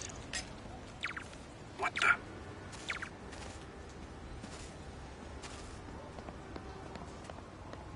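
Soft footsteps pad slowly over grass.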